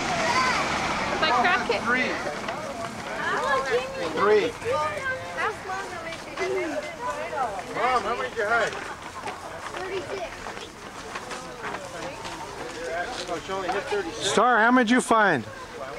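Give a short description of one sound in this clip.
Several people talk and call out at once outdoors, children and adults mixed.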